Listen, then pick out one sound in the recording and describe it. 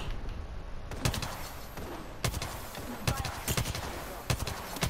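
A gun fires several rapid shots.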